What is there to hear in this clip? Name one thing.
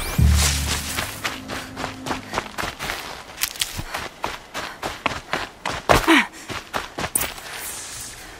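Quick footsteps rustle through grass and leafy undergrowth.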